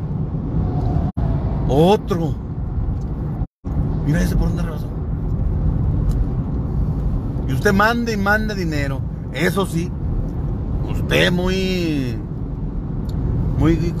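Tyres hum steadily on a paved road from inside a moving car.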